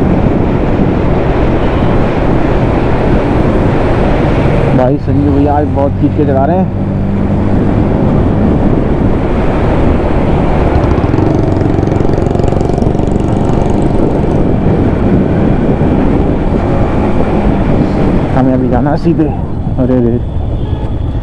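A single-cylinder sport motorcycle cruises along a road.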